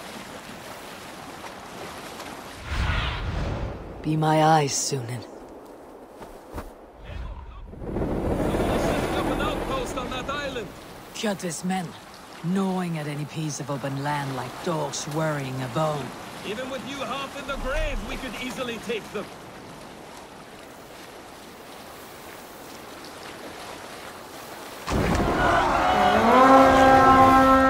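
Waves wash against a sailing boat's hull.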